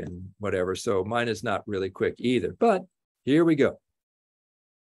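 An elderly man speaks calmly through a microphone on an online call.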